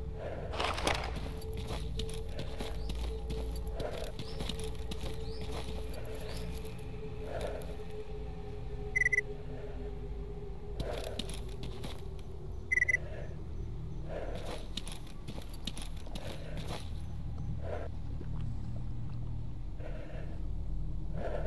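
Footsteps crunch through dry grass at a steady walking pace.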